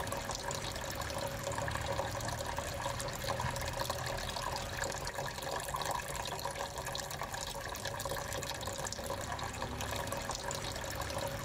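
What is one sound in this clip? Water trickles and splashes steadily into a small basin.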